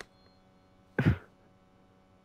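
A telephone receiver is lifted with a sharp clatter.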